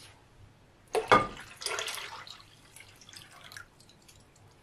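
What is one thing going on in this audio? Liquid pours into a pot with a splashing gurgle.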